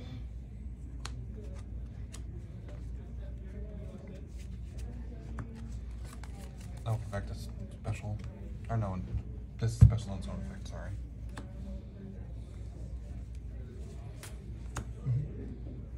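Cards tap and slap softly onto a play mat.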